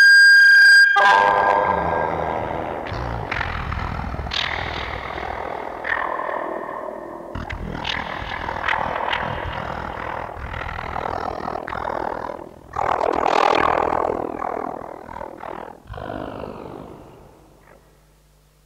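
A man speaks into a microphone through loudspeakers, with an echoing sound.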